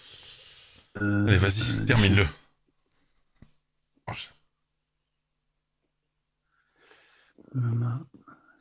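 A young man speaks through a phone call.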